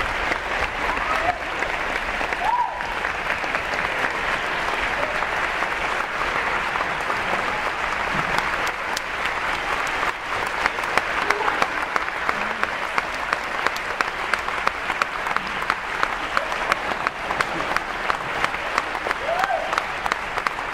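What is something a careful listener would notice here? People in an audience cheer and whoop.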